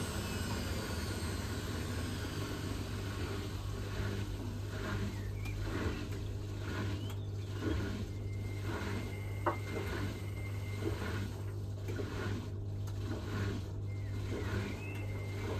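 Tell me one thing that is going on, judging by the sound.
A washing machine motor hums steadily.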